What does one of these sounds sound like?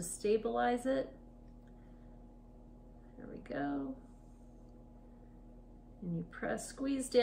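A woman talks calmly and close by, pausing between phrases.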